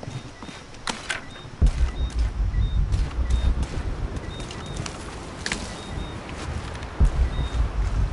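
Footsteps crunch on leaves and rocks.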